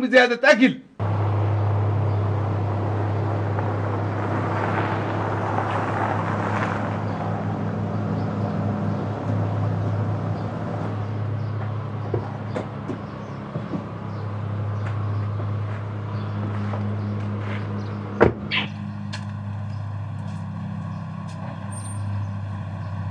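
A car engine hums as a car pulls up and idles.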